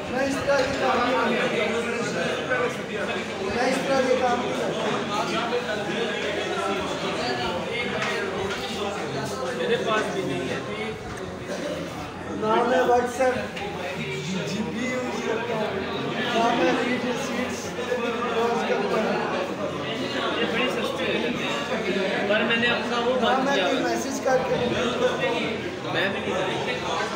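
A hubbub of many voices murmurs in the background.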